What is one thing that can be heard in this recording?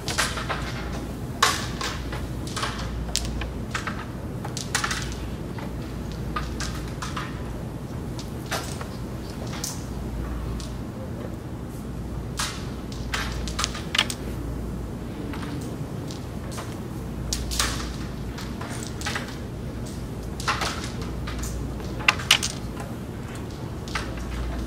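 Carrom pieces click sharply as a striker is flicked across a board.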